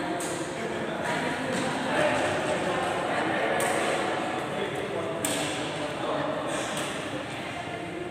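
Two men talk casually in an echoing sports hall.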